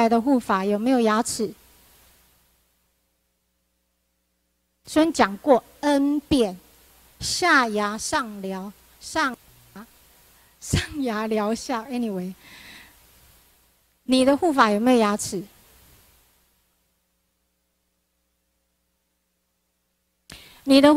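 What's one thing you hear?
A woman speaks calmly into a microphone, close by, with pauses.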